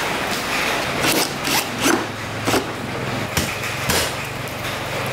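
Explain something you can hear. A hand tool clicks and knocks against plastic up close.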